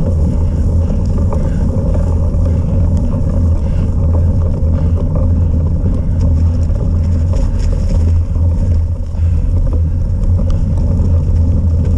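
A small engine drones loudly and steadily close by.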